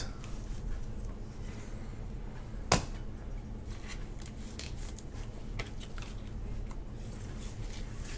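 A plastic card sleeve crinkles in gloved hands.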